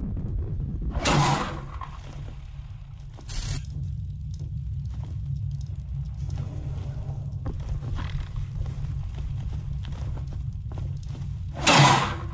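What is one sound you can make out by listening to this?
An explosion bursts with a loud roaring blast.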